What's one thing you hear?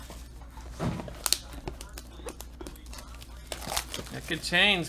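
Plastic card packs rustle and crinkle as they are handled.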